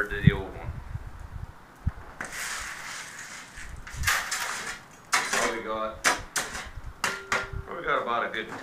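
A shovel scrapes across snow.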